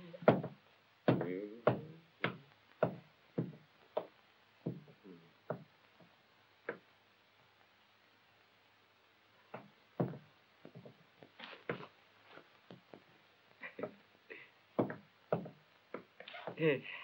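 Objects knock and rattle as a man rummages through things.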